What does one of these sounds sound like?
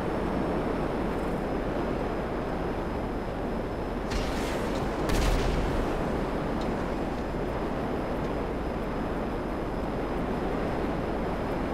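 A jet engine roars steadily with afterburner.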